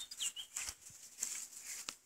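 Sandals step across grass.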